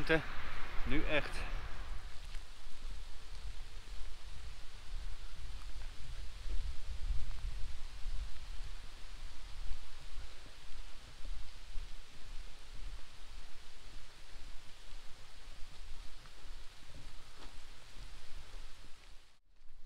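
Wind blows and buffets outdoors.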